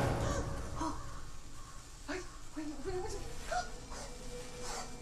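A woman speaks softly through television speakers.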